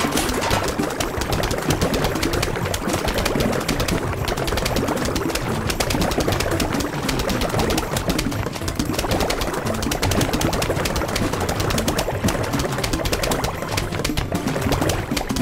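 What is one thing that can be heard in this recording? Rapid popping shots fire over and over in a game.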